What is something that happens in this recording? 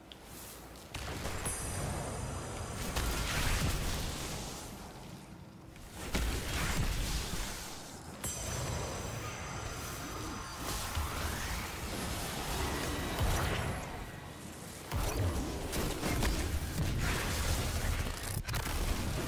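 Gunfire and blasts crackle from a game.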